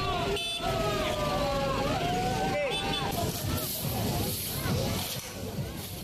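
A crowd of men shout and talk loudly outdoors.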